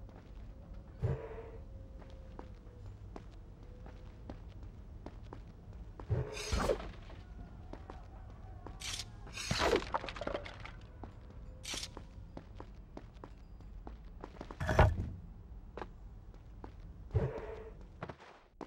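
Blades swish through the air.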